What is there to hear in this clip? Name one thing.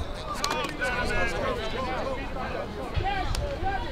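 Several young men call out on a playing field.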